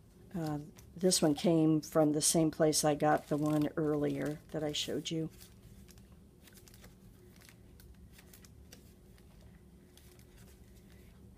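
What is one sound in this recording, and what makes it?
Paper pages rustle softly as they are turned by hand.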